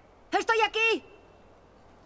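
A teenage girl calls out loudly nearby.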